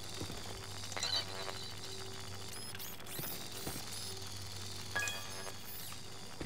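An electronic scanner chirps and beeps.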